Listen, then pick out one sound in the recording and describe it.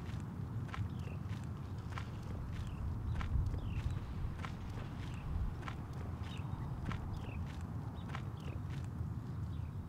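Footsteps crunch on a gravel road at a steady walking pace.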